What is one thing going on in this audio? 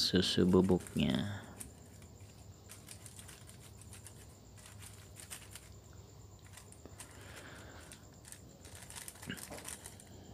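A plastic packet crinkles and rustles.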